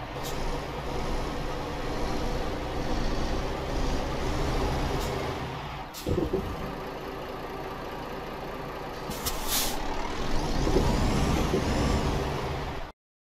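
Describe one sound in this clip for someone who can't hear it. A heavy truck engine rumbles steadily as it drives slowly.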